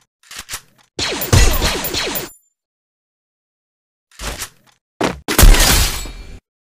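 A sword swishes through the air in quick strokes.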